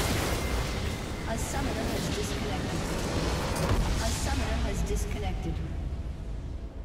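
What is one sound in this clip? Spell blasts and hits crash and whoosh in a fantasy battle game.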